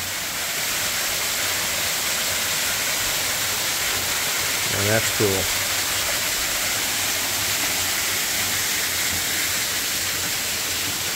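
A waterfall splashes steadily into a pool nearby.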